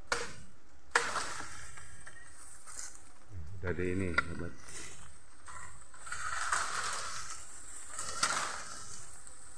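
Leaves and branches rustle as someone pushes through dense brush.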